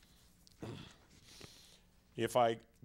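Papers rustle as a man handles them.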